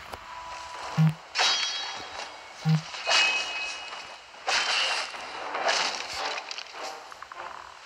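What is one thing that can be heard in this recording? Metal weapons clash and strike a shield in quick, loud blows.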